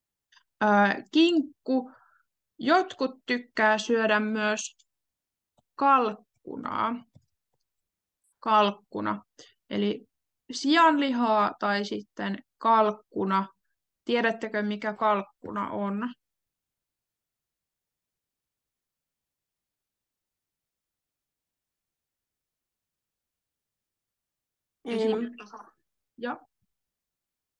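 A young woman speaks calmly through a microphone on an online call.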